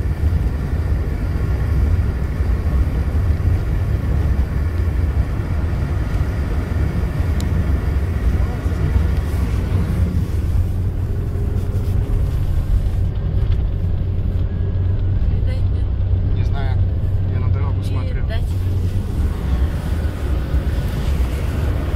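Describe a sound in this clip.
Wind rushes and buffets against a moving car.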